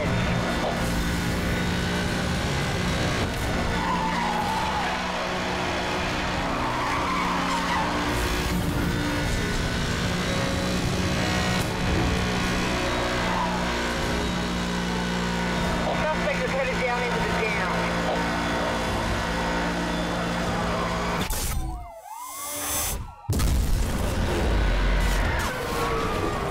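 A race car engine roars at high speed.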